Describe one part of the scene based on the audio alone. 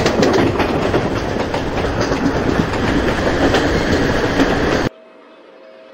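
A train rumbles loudly, heard from inside a carriage.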